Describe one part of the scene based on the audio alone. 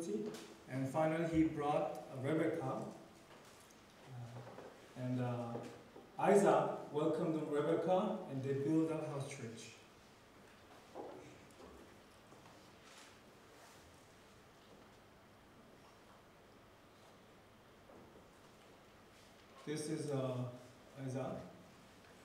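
A man lectures calmly through a microphone in a large room, with pauses between phrases.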